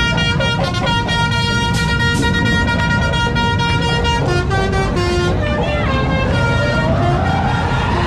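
A bus horn plays a loud, tuneful melody.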